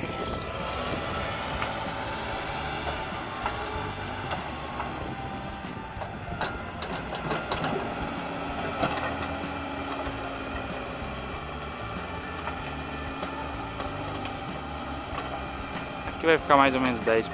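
A backhoe engine rumbles steadily nearby.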